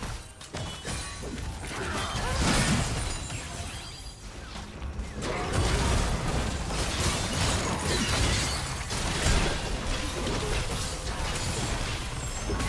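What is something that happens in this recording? Weapons clash and hit repeatedly.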